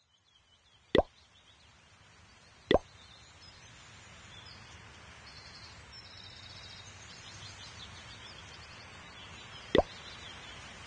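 A game button gives a short click.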